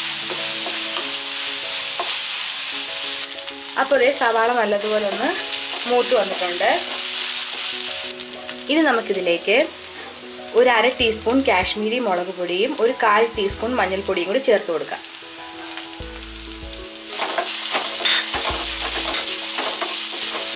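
A wooden spatula scrapes and stirs in a frying pan.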